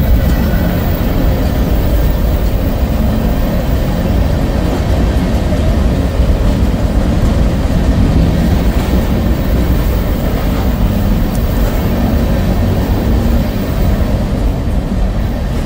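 A freight train rumbles past close by, steel wheels clattering over rail joints.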